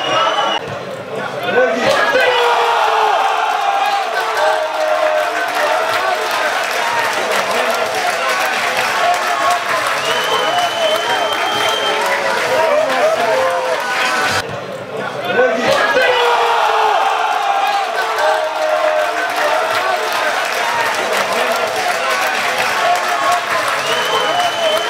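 Men shout from a distance across an outdoor football pitch.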